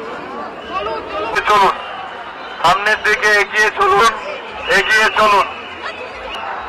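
A man shouts loudly through a megaphone.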